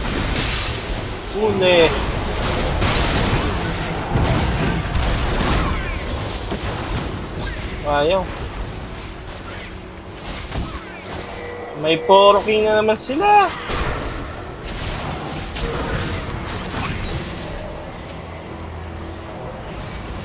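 Magic blasts and hits crackle and thump in a busy fight.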